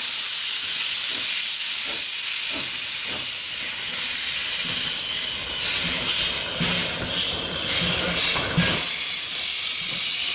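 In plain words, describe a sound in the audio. A steam locomotive chuffs and clanks as it rolls slowly past.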